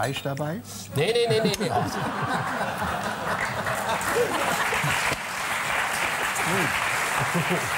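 Men laugh heartily.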